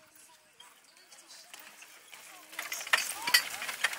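Carriage wheels roll and rattle close by.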